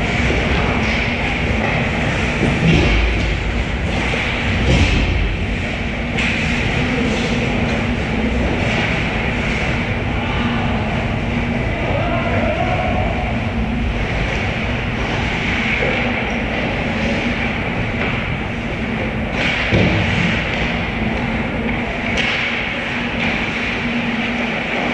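Skates scrape across the ice in a large echoing rink.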